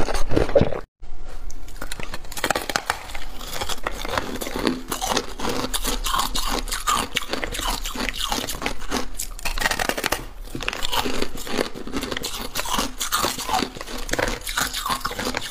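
A woman bites and crunches loudly on ice close to a microphone.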